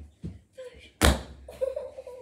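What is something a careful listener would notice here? A soft toy thuds onto the floor.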